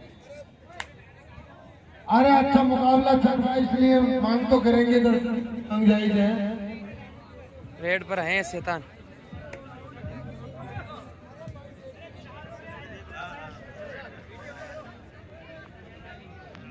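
A crowd murmurs and cheers in the background.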